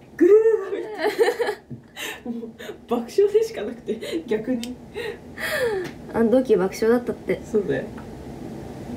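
A young woman laughs and talks with animation close by.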